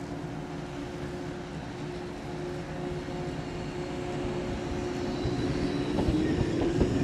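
A train approaches, its motor humming with a steady tone.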